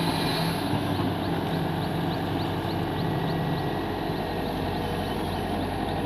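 An excavator's hydraulics whine as its arm moves.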